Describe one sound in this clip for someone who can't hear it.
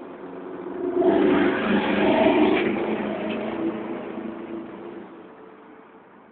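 A bus rumbles past up close.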